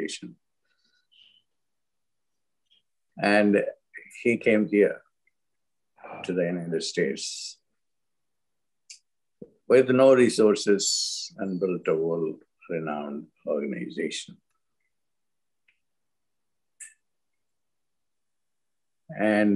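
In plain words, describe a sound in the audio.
An elderly man speaks calmly with pauses, heard through an online call.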